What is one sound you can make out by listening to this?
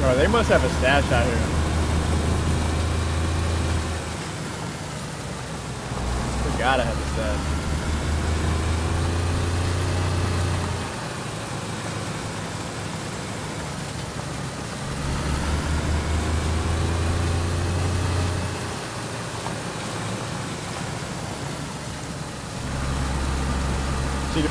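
Tyres crunch and rumble over bumpy ground.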